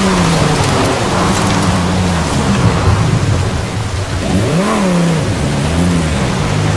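A sports car engine roars, rising and falling in pitch.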